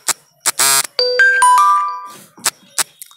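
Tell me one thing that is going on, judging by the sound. A phone chimes with a short message alert.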